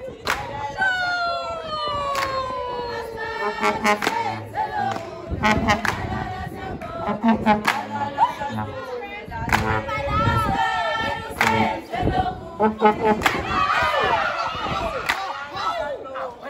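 Children sing and cheer loudly outdoors.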